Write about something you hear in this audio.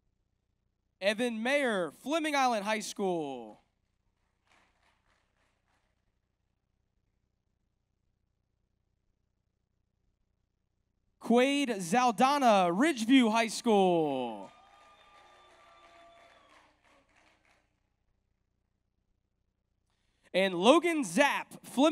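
A man announces names through a loudspeaker in a large echoing hall.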